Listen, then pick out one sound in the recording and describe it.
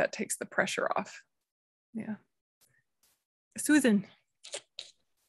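A young woman speaks calmly and warmly, heard close through a microphone on an online call.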